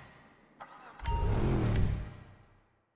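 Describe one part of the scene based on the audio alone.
A powerful car engine starts and roars loudly.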